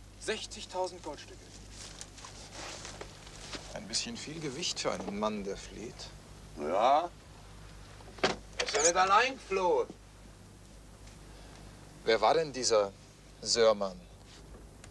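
Men talk quietly and tensely, close by.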